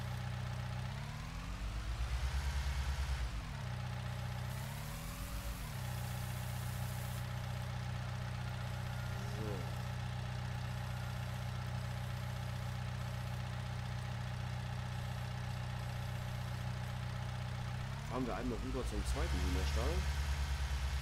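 Hydraulics whine as a loader bucket is raised and lowered.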